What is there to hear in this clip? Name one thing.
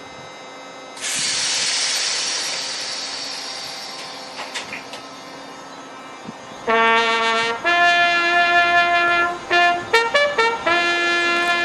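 A train rolls slowly past.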